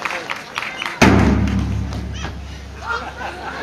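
A large drum booms with a deep, ringing strike.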